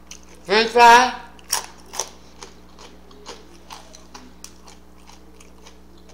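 A woman bites and chews crunchy food close by.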